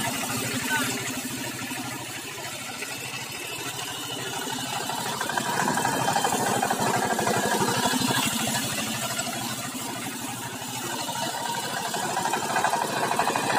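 A small diesel engine chugs steadily nearby, louder as it comes close.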